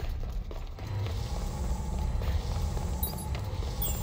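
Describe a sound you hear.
A fire crackles close by.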